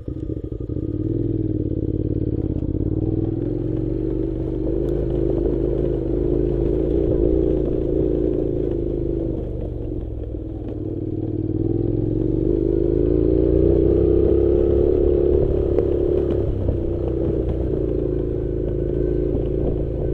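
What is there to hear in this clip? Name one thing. Tyres crunch over loose gravel.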